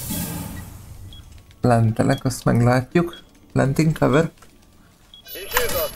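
An electronic device beeps as its keys are pressed.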